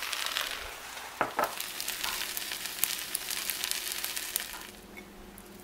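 Seasoning rattles and shakes out of a plastic bottle.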